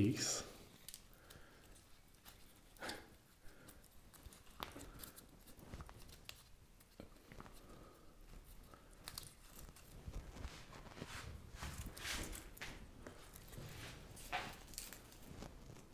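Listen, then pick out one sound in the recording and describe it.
Dry moss and leaves rustle softly under hands.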